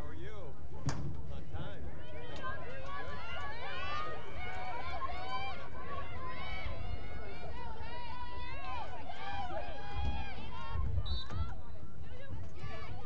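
Young women shout to each other across an open field, heard from a distance.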